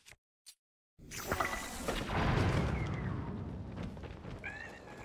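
Flames burst with a whoosh and crackle.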